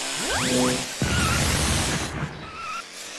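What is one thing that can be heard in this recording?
A fiery explosion bursts with a loud roaring rush.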